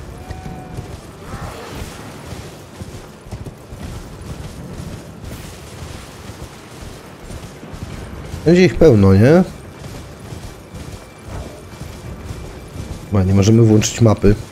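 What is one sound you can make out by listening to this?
A horse gallops, its hooves thudding steadily on the ground.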